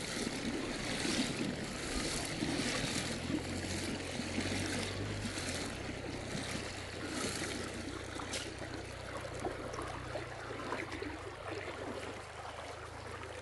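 Legs splash and swish through shallow water as a man wades.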